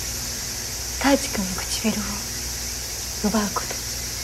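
A young woman talks playfully and close by.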